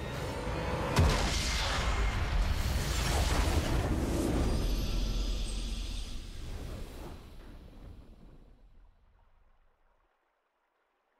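A swelling orchestral victory fanfare plays and slowly fades away.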